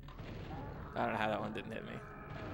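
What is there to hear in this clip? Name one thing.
Gunshots blast from a video game.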